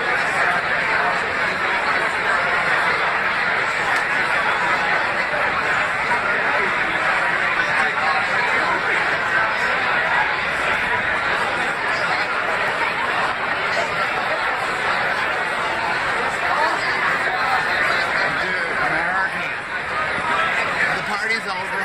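A crowd chatters loudly all around, in a large echoing hall.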